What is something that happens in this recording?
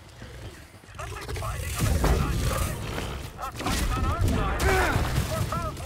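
A large beast growls and roars loudly.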